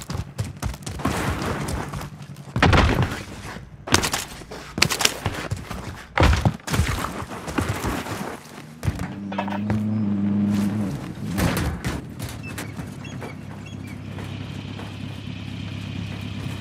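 Footsteps run quickly over dirt and metal.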